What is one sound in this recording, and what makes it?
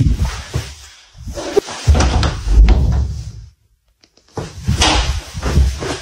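A door handle turns with a click.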